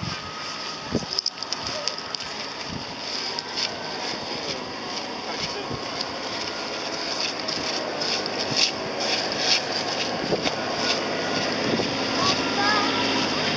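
Footsteps crunch on sand and gravel.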